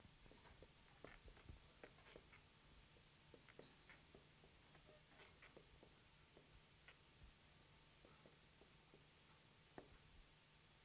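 A marker taps and squeaks faintly on a whiteboard.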